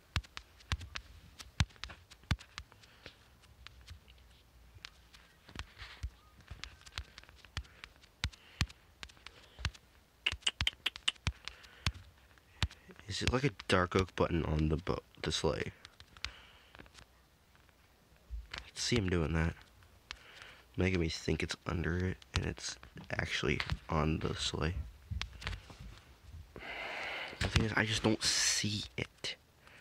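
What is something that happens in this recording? Soft game footsteps tap in quick succession.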